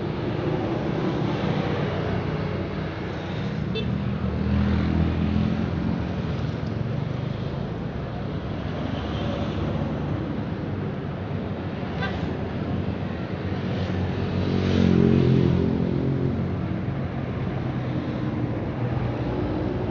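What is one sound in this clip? Road traffic rumbles past steadily.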